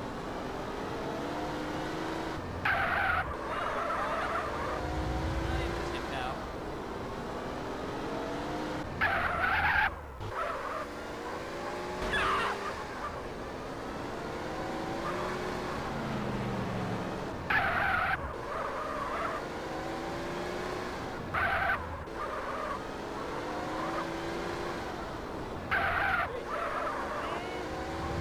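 A car engine revs up and down steadily.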